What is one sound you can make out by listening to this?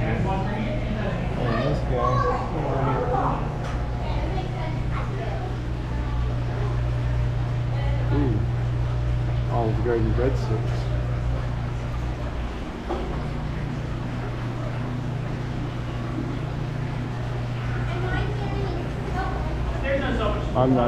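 Aquarium pumps hum steadily and low.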